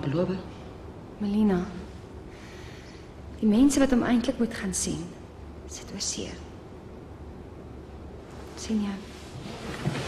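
A middle-aged woman speaks calmly and quietly nearby.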